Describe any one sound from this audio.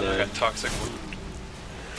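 A young man speaks briefly and casually, close to a microphone.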